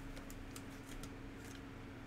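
Foil card wrappers crinkle as they are torn open.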